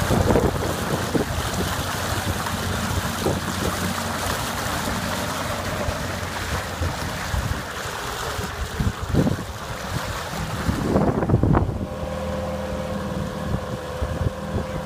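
Water splashes and rushes along the side of a moving boat.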